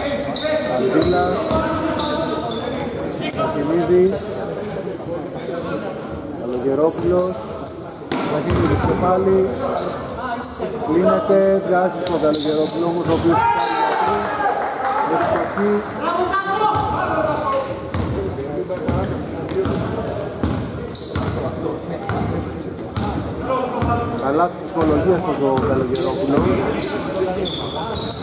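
Men shout and call out to each other across the court.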